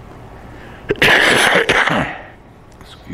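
An elderly man coughs loudly into his hand.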